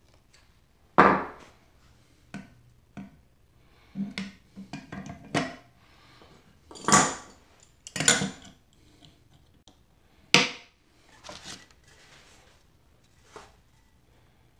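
A metal hand plane knocks and clatters on a wooden bench.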